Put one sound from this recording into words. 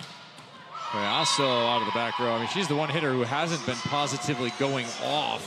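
Young women cheer and shout together.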